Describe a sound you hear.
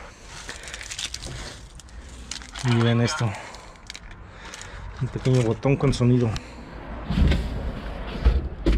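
Plastic and paper rustle and crinkle as rubbish is rummaged through.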